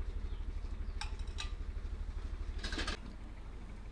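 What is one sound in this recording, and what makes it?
Metal pots clank against each other.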